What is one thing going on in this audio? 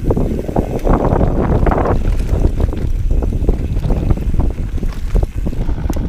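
Bicycle tyres roll and bump over a rough dirt trail.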